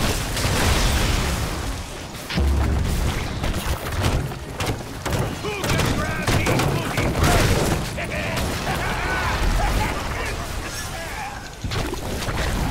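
Magical blasts and crackling impacts burst repeatedly in a fight.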